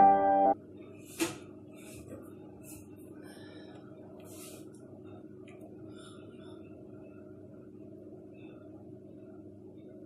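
Liquid pours into a bowl.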